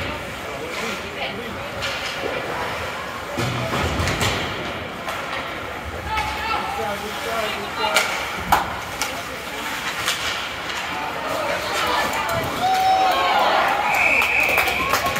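Spectators murmur and shout in a large echoing rink.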